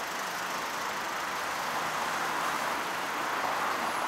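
A city bus engine idles close by.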